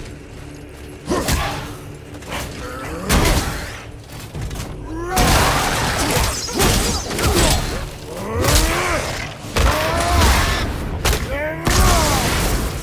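Heavy blows land with loud thuds and clangs in a fight.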